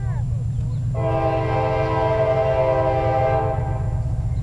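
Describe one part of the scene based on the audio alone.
A train horn blows a long, loud blast, then stops.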